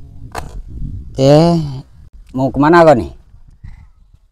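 A boy speaks close by.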